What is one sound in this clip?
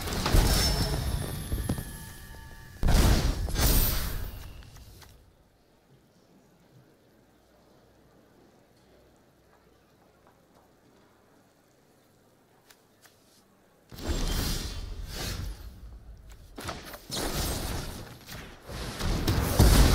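Magical game sound effects whoosh and chime.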